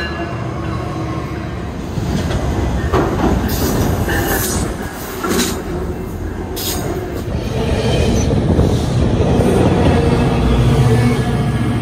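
A passing train rumbles loudly close by.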